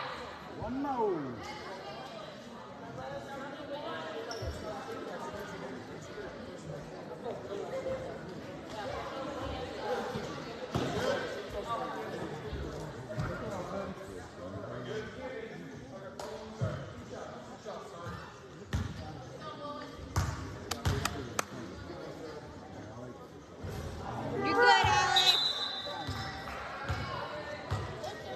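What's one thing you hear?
A crowd of spectators murmurs and chatters in a large echoing gym.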